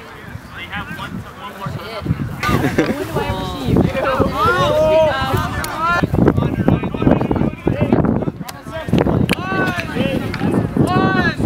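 Young men shout and call out to each other across an open field.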